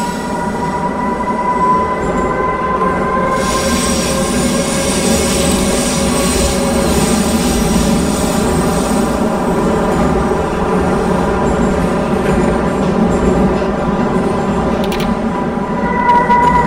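A train's electric motors whine steadily.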